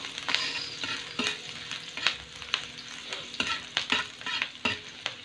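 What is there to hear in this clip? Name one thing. Rice sizzles in a hot wok.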